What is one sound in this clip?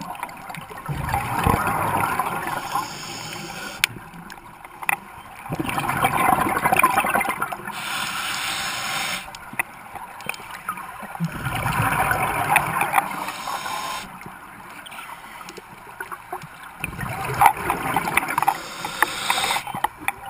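Close underwater, a diver breathes slowly and loudly through a regulator.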